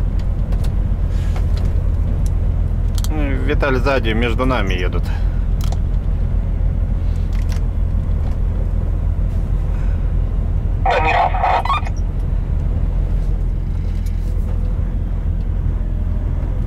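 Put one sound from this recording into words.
A heavy vehicle's engine rumbles low and steady from inside the cab.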